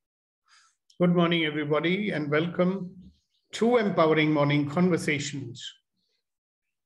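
An older man speaks calmly through a microphone on an online call.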